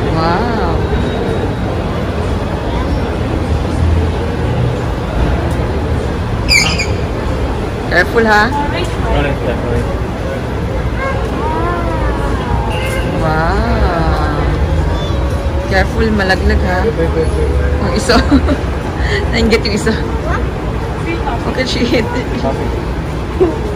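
A young girl talks excitedly close by.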